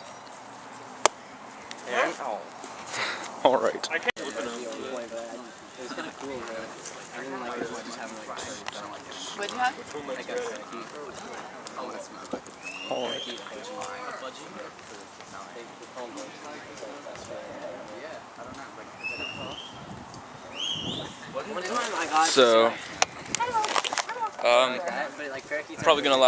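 Teenage boys talk and call out nearby outdoors.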